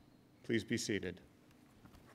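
A man speaks briefly into a microphone in a large hall.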